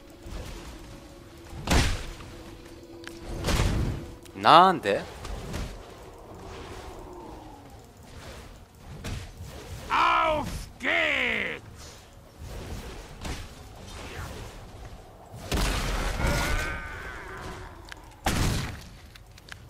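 Game spell effects whoosh and burst in a fight.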